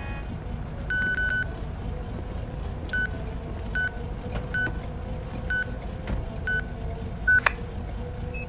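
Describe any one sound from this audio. A handheld radio beeps several times.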